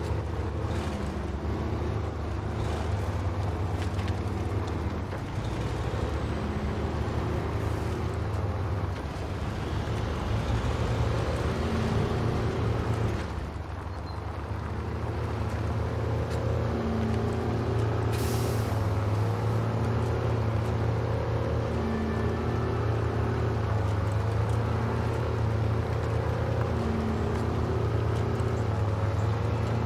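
A heavy truck engine rumbles and strains steadily.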